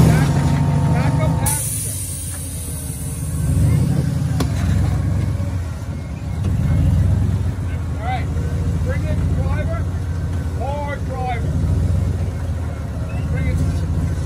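An engine idles and revs in low, throaty bursts.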